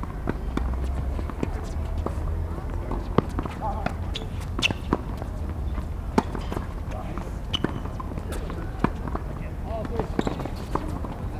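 Tennis rackets strike a ball with sharp pops.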